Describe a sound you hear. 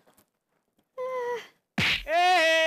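A middle-aged woman cries out in alarm.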